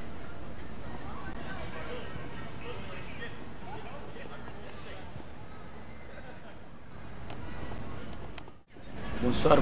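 Pigeons coo softly.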